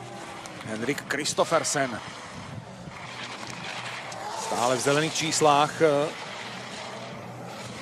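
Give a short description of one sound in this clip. Skis scrape and hiss over hard snow.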